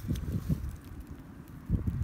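Dry straw rustles under a hand.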